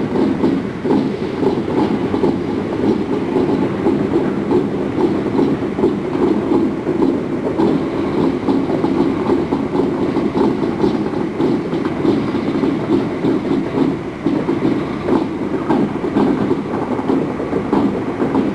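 Wheels clatter and click over rail joints.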